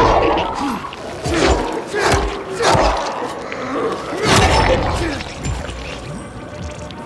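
Loud blasts and bursts of crackling electricity go off in quick succession.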